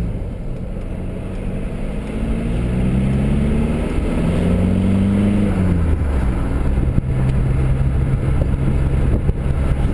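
A car engine hums from inside the car, rising in pitch as it speeds up and dropping after a gear change.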